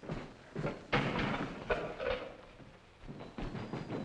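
A metal cell door rattles and clangs shut.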